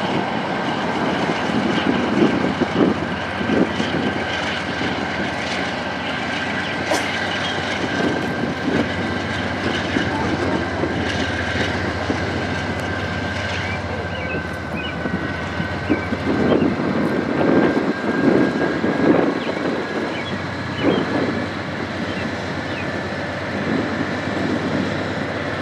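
A freight train rumbles and rolls steadily past nearby.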